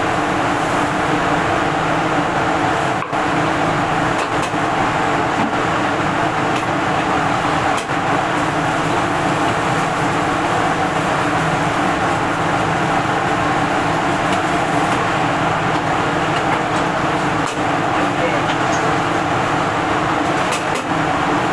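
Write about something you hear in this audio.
A metal ladle scrapes and clinks against a wok.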